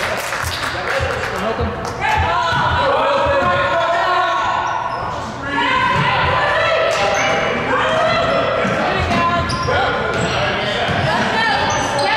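A basketball bounces with dull thuds.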